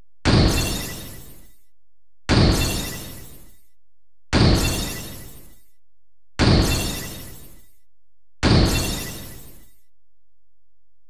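A heavy whooshing thud sounds each time a reward card slides in, then fades.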